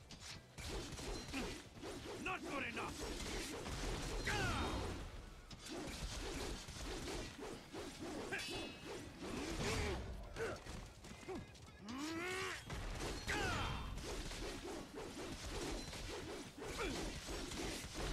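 Blades clash and ring with sharp metallic hits.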